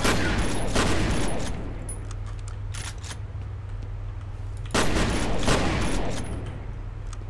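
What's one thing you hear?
An explosion booms and rumbles, echoing off hard walls.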